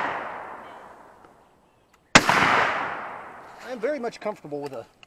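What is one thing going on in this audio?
A shotgun blast booms outdoors and echoes away.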